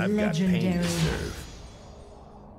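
Electronic game sound effects chime and whoosh.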